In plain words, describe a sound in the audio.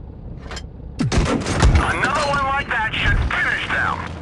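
A tank cannon fires with a deep boom.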